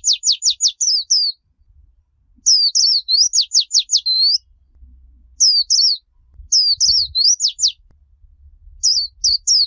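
A small bird chirps in quick, high, shrill bursts close by.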